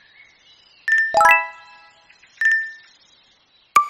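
A bright chime sounds for a completed level.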